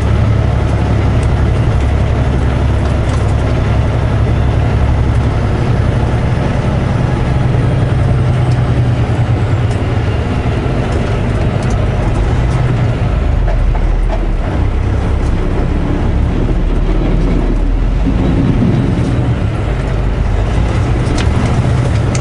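Tyres roll on pavement.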